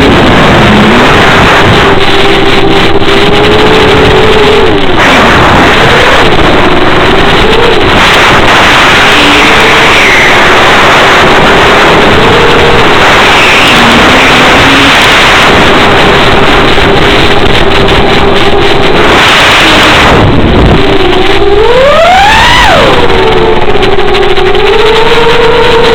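A small electric motor whines steadily, wavering in pitch and surging sharply higher near the end.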